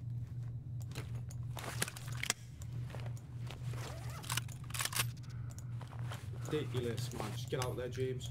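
Gear rustles and clicks as items are moved in a video game.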